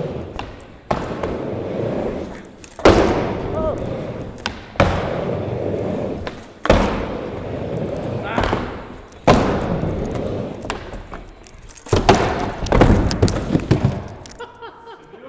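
Skateboard wheels roll and rumble on a wooden ramp.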